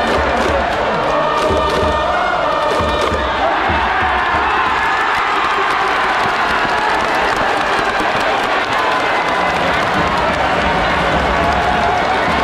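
A huge stadium crowd chants and cheers loudly, all around.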